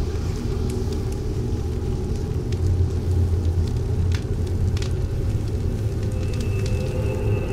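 A fire roars steadily.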